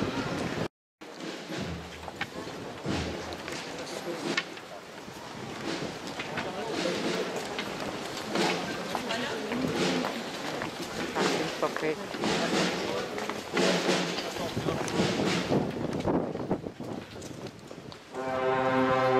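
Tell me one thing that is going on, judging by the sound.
A crowd murmurs and shuffles along on foot.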